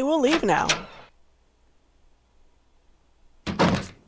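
A heavy door creaks open.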